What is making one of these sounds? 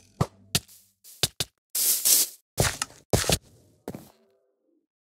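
Sword blows land with short, sharp hits.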